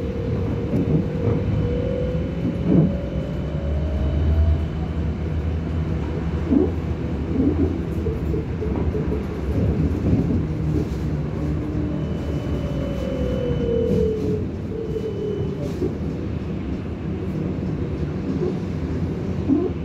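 A car rolls along a wet road with a steady low rumble.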